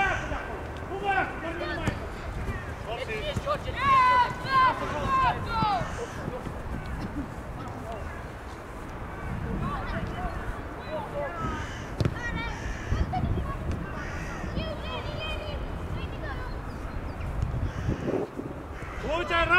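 Young players shout and call out to each other across an open field.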